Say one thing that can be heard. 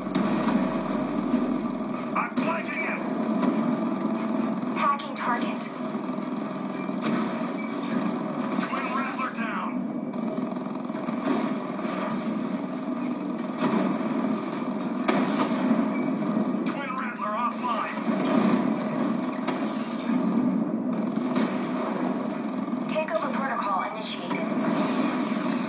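Rapid gunfire rattles and bursts.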